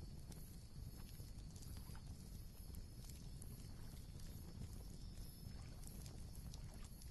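Embers of a fire crackle and pop softly.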